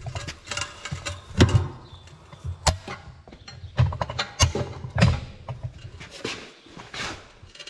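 A tyre iron scrapes and clanks against a metal wheel rim.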